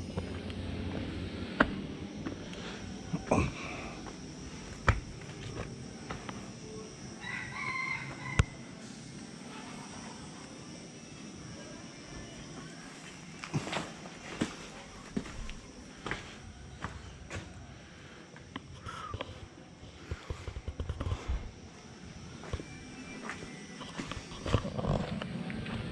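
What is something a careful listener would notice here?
Footsteps scuff and tap on rocky ground.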